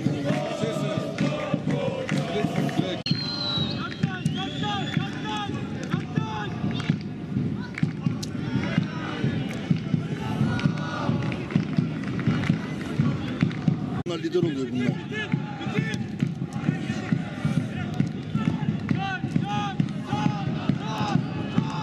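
Men shout and call to each other across an open field outdoors.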